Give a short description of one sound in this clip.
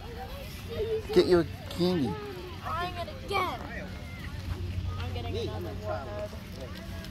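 Children shout and chatter excitedly outdoors.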